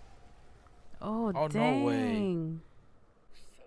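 A young woman speaks with animation close to a microphone.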